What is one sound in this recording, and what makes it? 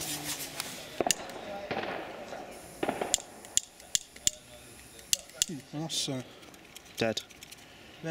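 Hanging tubes clink and tap against each other.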